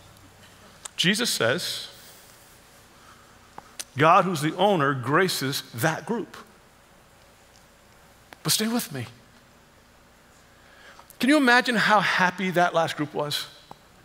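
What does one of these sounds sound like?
A middle-aged man speaks with animation into a head microphone, in bursts with pauses.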